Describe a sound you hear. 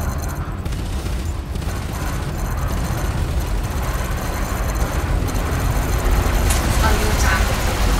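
Laser cannons fire in bursts.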